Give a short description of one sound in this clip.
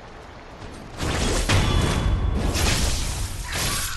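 Swords clash and strike in a burst of combat.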